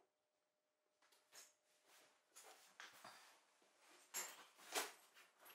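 Hands rub and knock against a soft instrument case.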